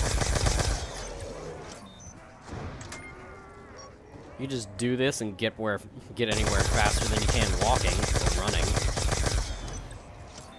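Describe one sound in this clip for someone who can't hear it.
A weapon fires loud, rapid bursts of energy blasts.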